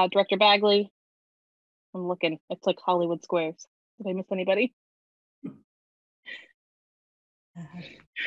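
A young woman talks calmly and cheerfully into a nearby webcam microphone.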